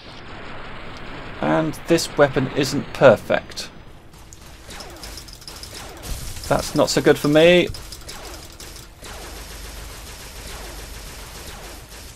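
A laser gun fires sharp zapping shots.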